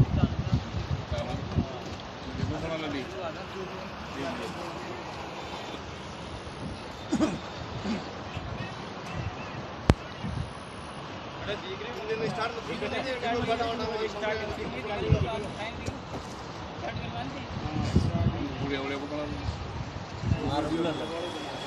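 A middle-aged man speaks calmly outdoors.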